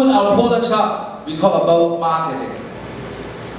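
A man speaks into a microphone through loudspeakers in a large room.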